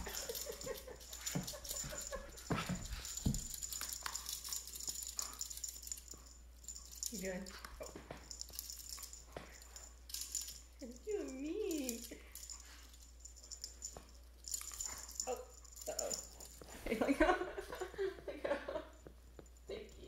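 A dog barks excitedly nearby.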